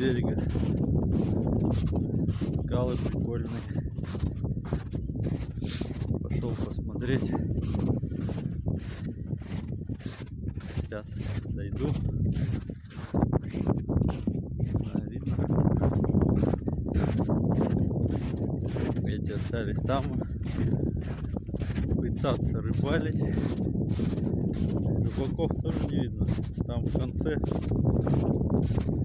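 Footsteps crunch steadily in snow.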